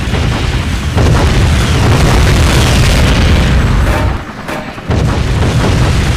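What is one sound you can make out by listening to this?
Machine guns fire in a video game.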